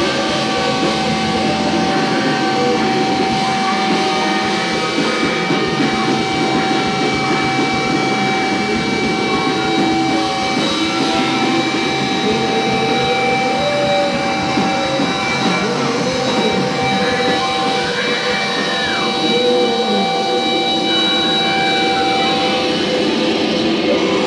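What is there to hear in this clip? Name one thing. Electric guitars ring out with distortion.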